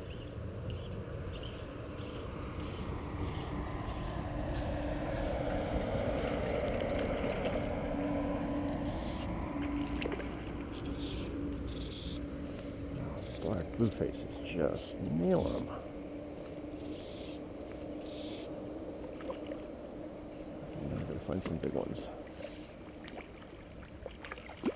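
A hooked trout splashes at the water's surface.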